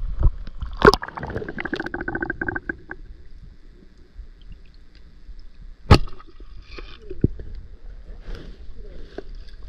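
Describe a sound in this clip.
Muffled gurgles and knocks sound underwater.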